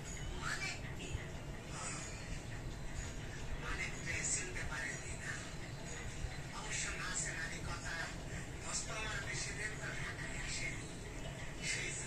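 A puppy chews and gnaws on a leash.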